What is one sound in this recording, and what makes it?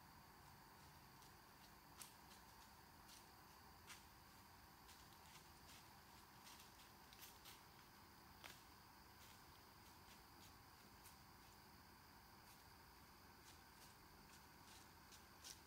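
A deer's hooves rustle and crunch through dry leaves nearby.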